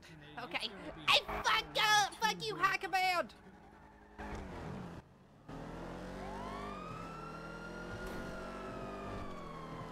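A car engine revs and roars as the car speeds away.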